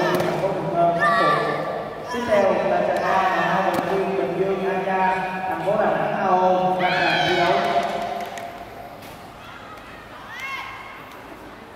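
A young man lets out sharp, rising shouts.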